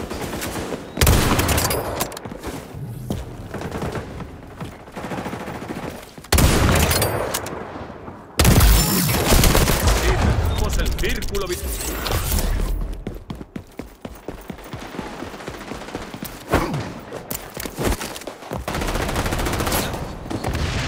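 Gunshots fire in loud, sudden bursts.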